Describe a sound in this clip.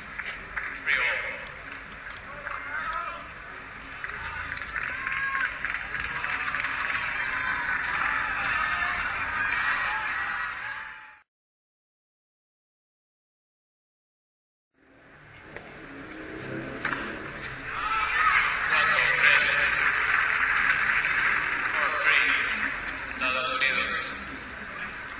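A crowd murmurs in a large stadium.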